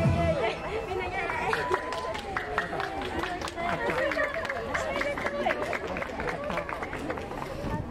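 Young women chatter excitedly close by.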